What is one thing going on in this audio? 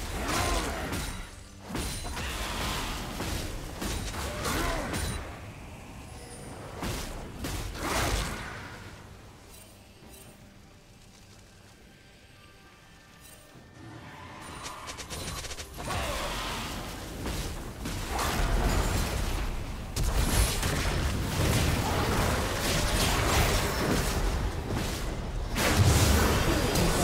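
Magic spells whoosh, zap and crackle in a hectic video game battle.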